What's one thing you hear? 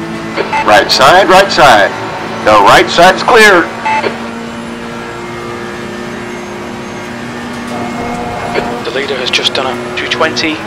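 A racing car engine drones steadily at high speed.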